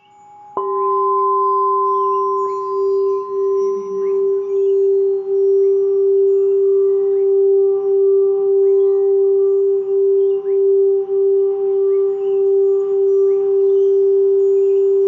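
A mallet circles a singing bowl's rim, drawing out a steady, pulsing hum.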